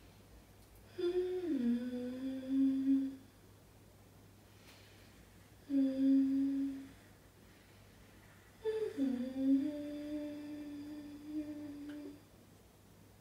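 A woman sings long, held notes close by.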